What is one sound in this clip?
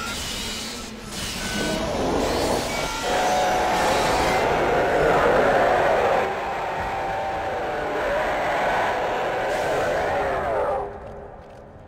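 A creature screeches and growls.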